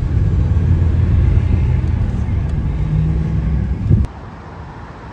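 A car engine rumbles steadily from inside a moving car.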